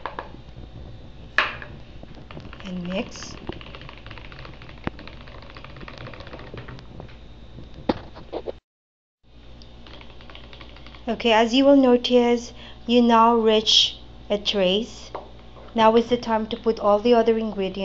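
A hand blender whirs steadily as it mixes a thick liquid.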